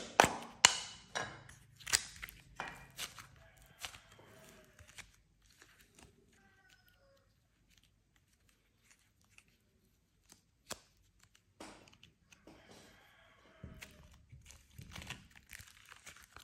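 Soft clay squishes and squelches between fingers.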